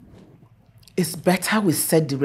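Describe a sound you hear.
A woman speaks loudly and with animation close by.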